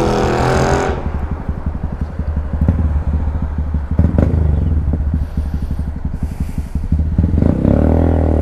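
A motorcycle engine idles with a steady throb.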